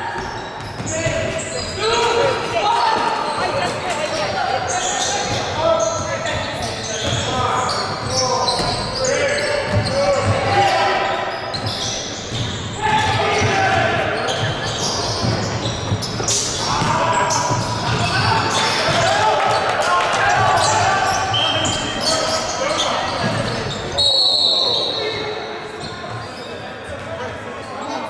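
Spectators nearby talk and call out in a large echoing hall.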